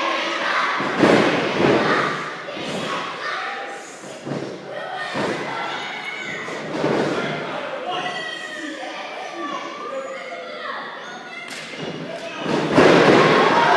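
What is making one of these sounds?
Bodies thud heavily onto a wrestling ring's mat.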